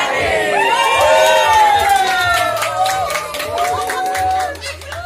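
A crowd claps hands in quick bursts.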